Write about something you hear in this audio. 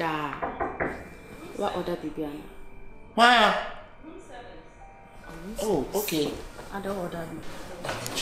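A young woman speaks softly and nearby.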